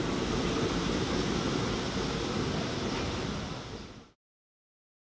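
A subway train rumbles and rolls away along the tracks, fading.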